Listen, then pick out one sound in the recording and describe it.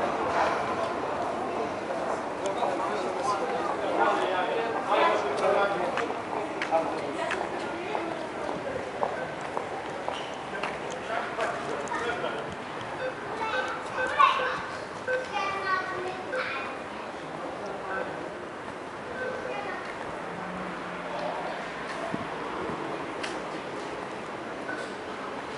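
Footsteps tap on paving nearby.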